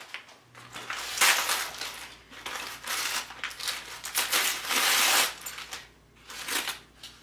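Wrapping paper crinkles and rustles as hands fold it.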